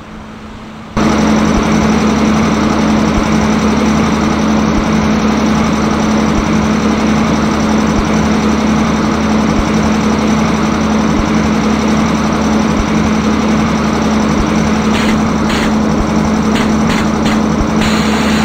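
A locomotive engine hums loudly and steadily up close.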